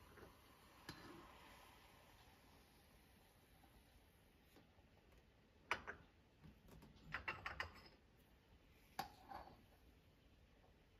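Coffee pours from a pot into a small cup.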